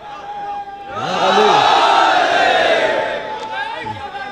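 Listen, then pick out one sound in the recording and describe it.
A crowd of men cries out together in response.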